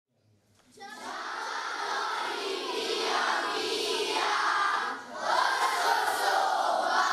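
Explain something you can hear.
A large group of children sings together loudly, close by.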